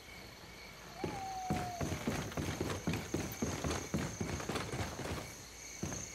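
Footsteps thud on hollow wooden boards.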